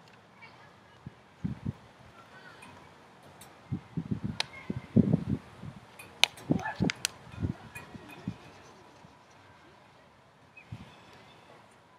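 A child swings along metal monkey bars outdoors.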